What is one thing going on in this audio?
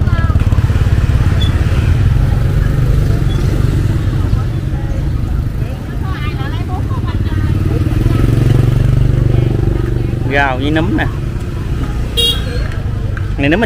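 A motorbike engine rumbles steadily up close.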